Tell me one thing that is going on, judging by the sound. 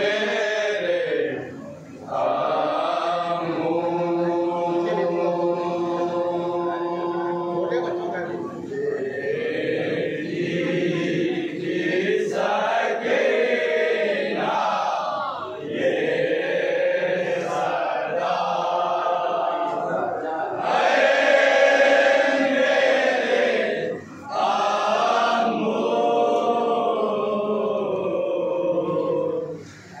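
A man chants a mournful lament loudly through a microphone.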